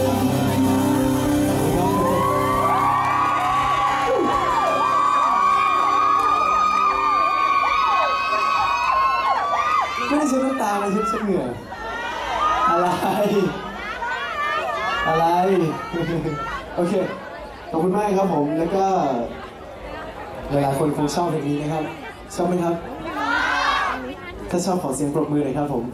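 A young man sings into a microphone, heard through loudspeakers.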